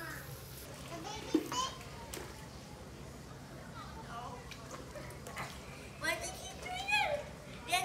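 A young child talks and shouts.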